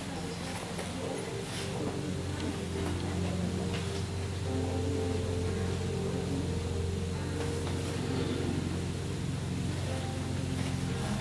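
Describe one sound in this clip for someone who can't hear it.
Music plays through loudspeakers in a large echoing hall.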